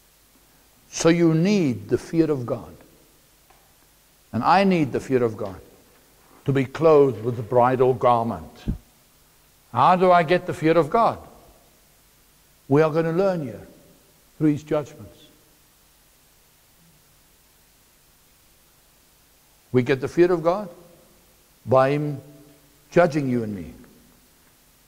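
A middle-aged man speaks with animation through a microphone, pausing now and then.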